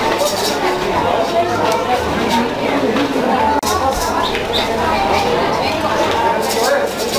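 A crowd of men and women chatter nearby in a busy, lively space.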